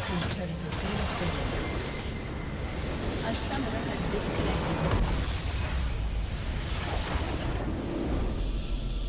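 A game battle rages with loud blasts and crashing effects.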